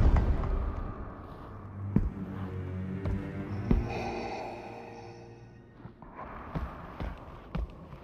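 Heavy footsteps thud slowly on a stone floor in an echoing hall.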